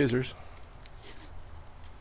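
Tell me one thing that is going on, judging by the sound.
Masking tape peels off a roll with a sticky rip.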